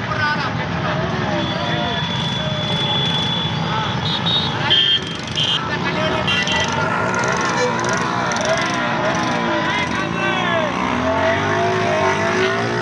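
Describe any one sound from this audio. A crowd of men shouts and chants outdoors.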